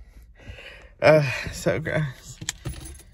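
A man laughs loudly.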